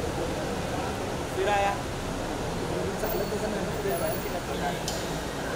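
A crowd of people chatters and murmurs close by.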